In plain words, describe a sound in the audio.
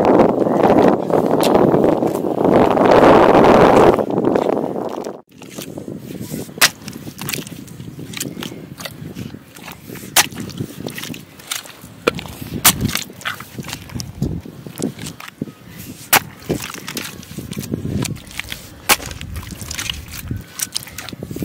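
Wet mud squelches underfoot.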